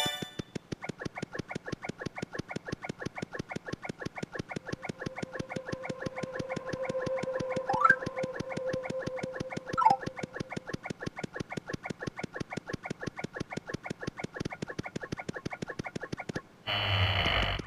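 Rapid cartoon footsteps patter quickly and steadily.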